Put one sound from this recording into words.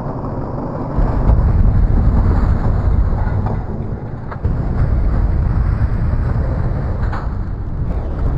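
A car crashes and tumbles with heavy thuds and scraping metal.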